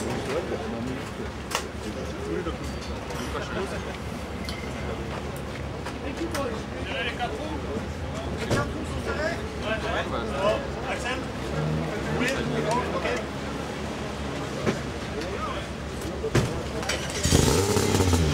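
Men talk nearby in a busy, echoing room.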